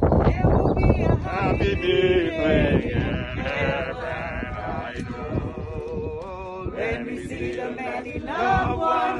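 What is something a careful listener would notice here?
A man chants a prayer in a steady, sung voice nearby.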